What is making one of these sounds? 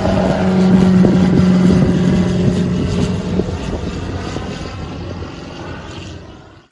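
A small propeller plane's engine drones overhead and slowly fades into the distance.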